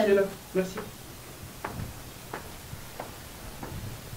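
Footsteps walk away on a hard floor.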